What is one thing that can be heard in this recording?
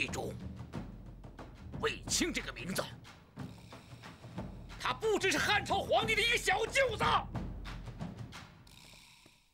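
A middle-aged man speaks forcefully and close by.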